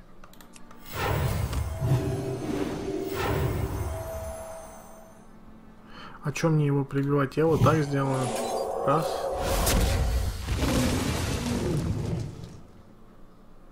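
Game sound effects crash and whoosh as cards attack and are played.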